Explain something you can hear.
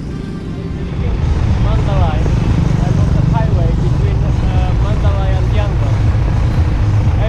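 Traffic rumbles steadily on a busy road.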